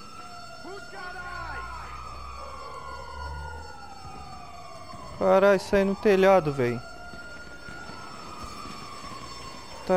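Footsteps run across a hard rooftop.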